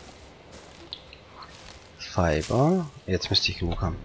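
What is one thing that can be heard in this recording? Leaves rustle as plants are pulled up.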